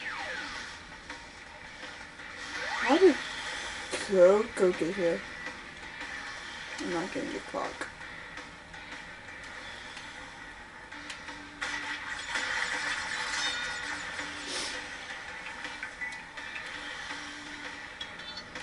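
A water scooter's engine hums from a television speaker.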